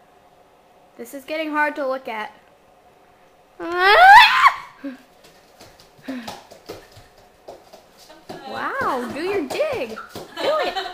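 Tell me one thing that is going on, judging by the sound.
A young girl shouts and sings loudly and excitedly close by.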